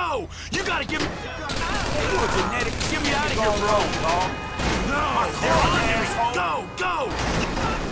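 A police siren wails and wavers nearby.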